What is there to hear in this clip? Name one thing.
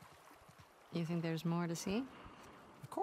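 A young woman asks a question calmly, close by.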